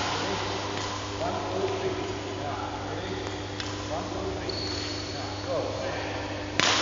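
Sneakers squeak on a hard floor as a player runs in a large echoing hall.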